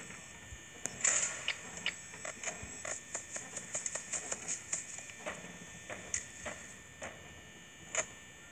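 Electronic static hisses and crackles.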